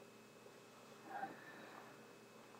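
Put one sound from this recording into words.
A person breathes sharply through a rubberised rain hood.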